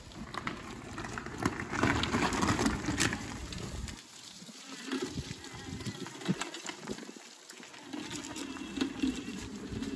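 A small go-kart engine rumbles as the kart drives away over rough ground.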